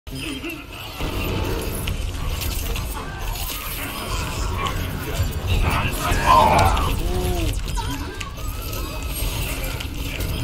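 Rapid video game gunfire and beam blasts ring out.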